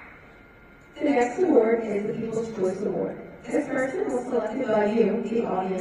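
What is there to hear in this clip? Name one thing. A woman speaks through a microphone and loudspeaker, echoing in a large hall.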